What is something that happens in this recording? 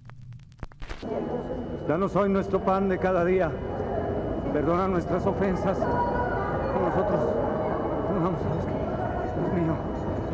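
A middle-aged man prays aloud, solemnly, in a large echoing hall.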